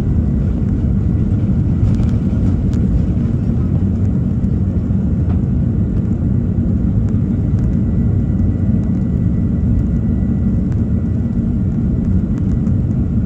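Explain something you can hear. Tyres rumble over a runway.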